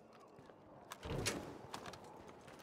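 A glass door swings open.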